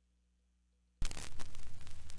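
A needle drops onto a spinning vinyl record with a soft thump.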